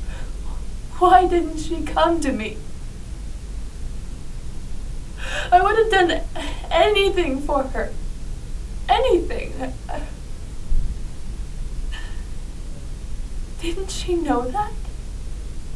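A young woman speaks emotionally in short bursts, close by.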